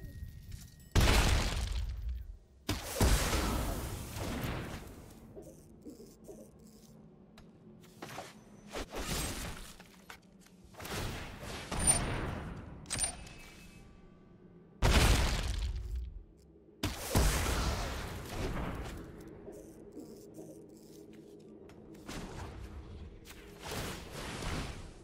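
Video game sound effects whoosh and boom in bursts.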